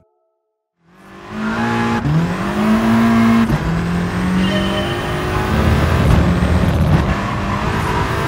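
A race car engine revs loudly and roars as it shifts up through the gears.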